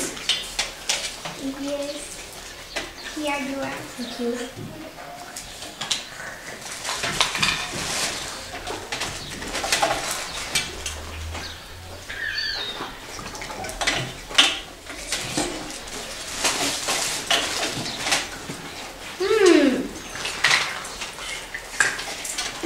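Young girls talk and chatter nearby.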